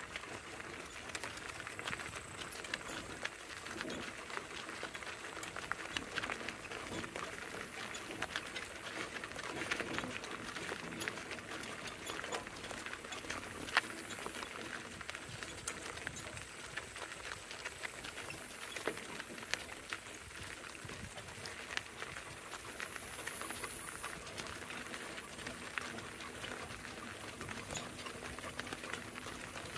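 Hooves clop steadily on a gravel road.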